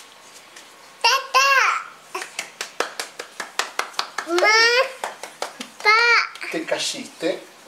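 A young boy squeals and laughs with excitement.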